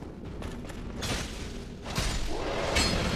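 A blade clashes and strikes with a sharp impact.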